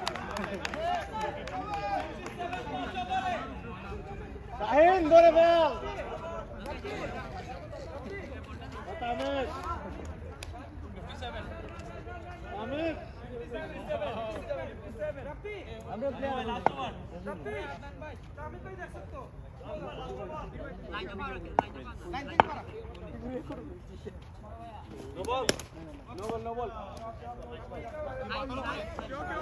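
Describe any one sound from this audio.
Men call out and talk loudly across an open outdoor space.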